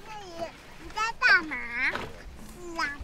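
A baby babbles and squeals loudly close by.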